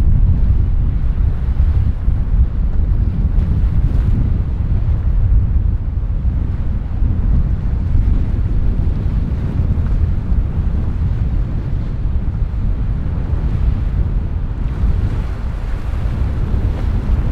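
A motor boat's engine rumbles steadily as it cruises past.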